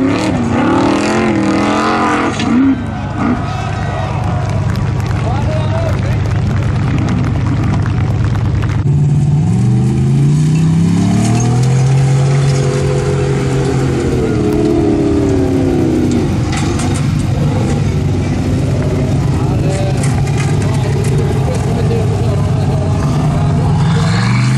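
Tyres spin and throw gravel and sand.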